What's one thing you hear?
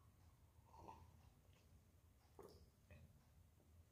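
A young woman sips from a cup.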